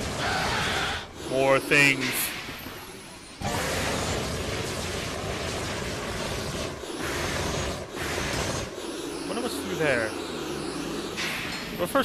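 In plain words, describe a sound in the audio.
Jet thrusters hiss and roar steadily.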